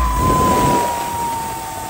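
Stage smoke jets blast with a loud hiss.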